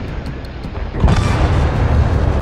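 A ship blows up with a sudden loud blast.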